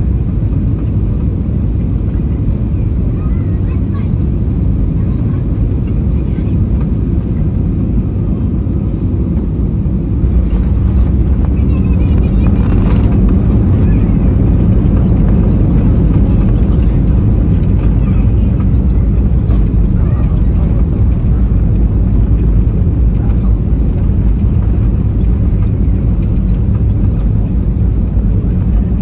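Jet engines roar steadily inside an aircraft cabin.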